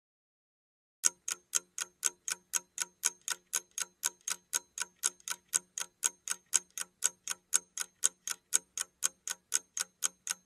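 A timer ticks quickly and steadily.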